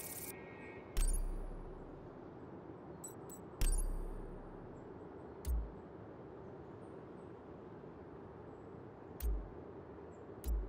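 Game menu selections click with soft thuds.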